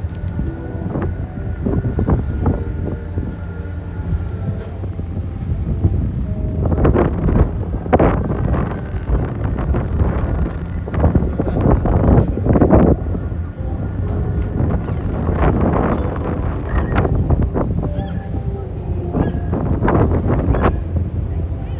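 Passersby chatter and talk nearby outdoors.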